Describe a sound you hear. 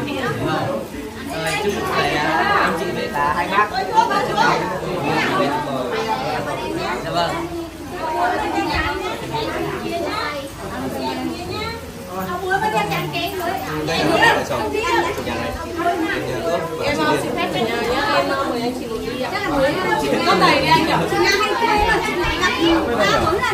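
Several young men and women talk and laugh together close by.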